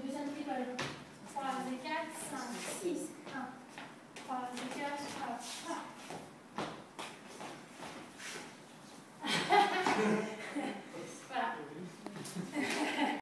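Shoes shuffle and tap on a wooden floor.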